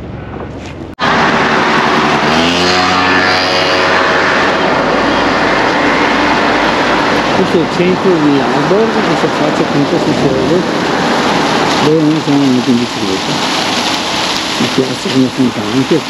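Water from fountains splashes and patters steadily.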